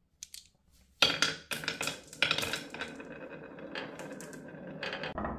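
Glass marbles roll and clatter along a wooden track.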